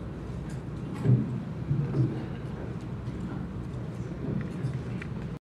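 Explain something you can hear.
A man speaks into a microphone, heard through loudspeakers in a large room.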